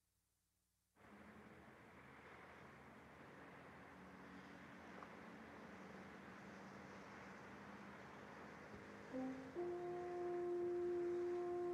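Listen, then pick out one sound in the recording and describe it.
Traffic hums steadily across a city far below.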